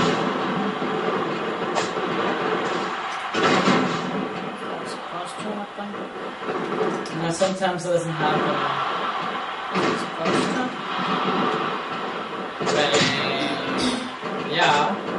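A crowd cheers and roars steadily.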